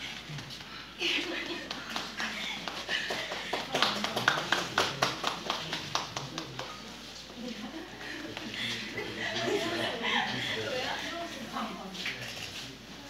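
Sneakers thump and squeak on a wooden floor as several dancers step in time.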